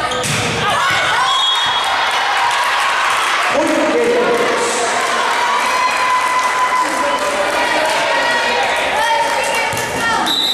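Young women cheer and shout together in a large echoing hall.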